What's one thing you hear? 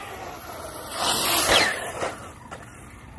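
A toy car's tyres skid and scrape on pavement.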